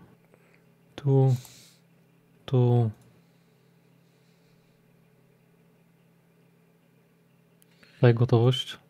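A short electronic chime sounds when a menu option is selected.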